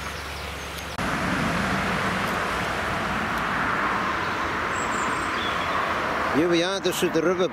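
Water rushes steadily nearby.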